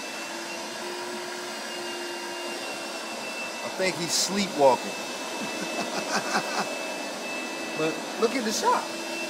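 A floor cleaning machine hums steadily.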